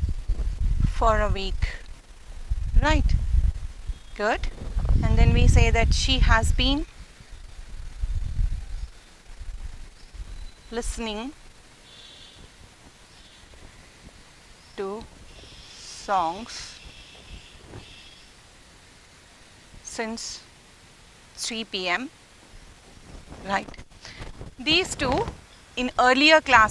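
A woman speaks calmly and clearly, as if teaching.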